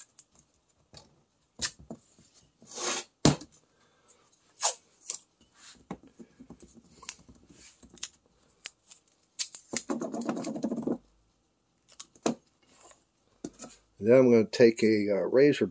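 Masking tape peels and tears off a roll in short rips.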